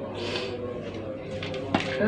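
A sheet of paper rustles.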